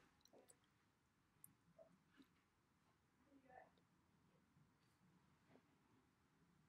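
A young girl makes soft playful sounds close to a microphone.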